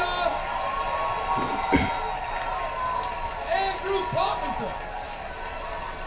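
A crowd cheers and shouts in a large hall, heard through a television speaker.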